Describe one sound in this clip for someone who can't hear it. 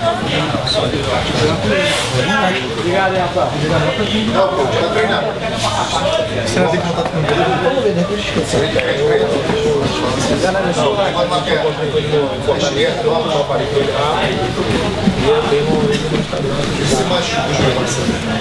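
Bodies shuffle and thump on a padded mat.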